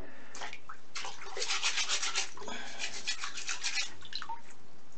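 Water sloshes as a hand stirs it in a bucket.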